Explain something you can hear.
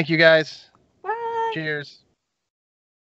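A young woman speaks and laughs over an online call.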